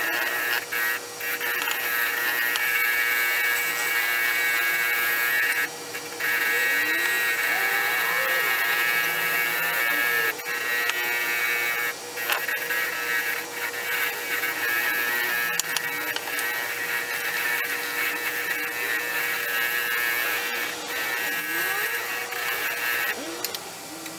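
A buffing wheel whirs and hisses steadily against metal.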